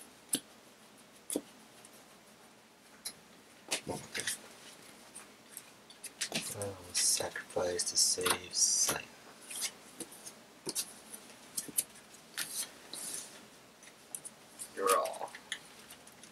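Cards riffle and shuffle in a hand.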